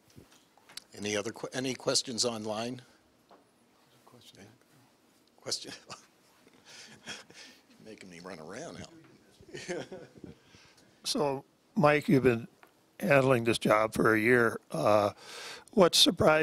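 A man speaks calmly to an audience, with pauses.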